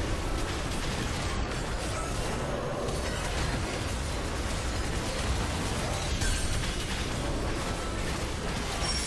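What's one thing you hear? Video game battle effects clash and crackle steadily.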